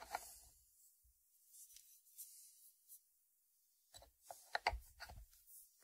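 A ceramic lid scrapes and clinks against its dish.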